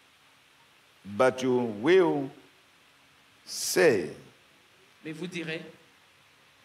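A man speaks with animation into a microphone, in short bursts.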